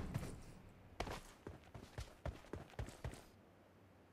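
Rifle gunshots crack in short, uneven bursts.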